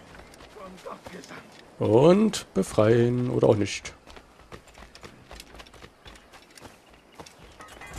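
Footsteps pad along a dirt path.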